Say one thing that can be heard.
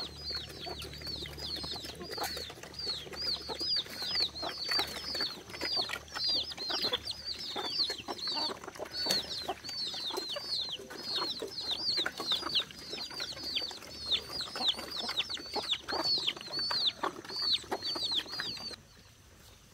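Chicks peep rapidly and without pause.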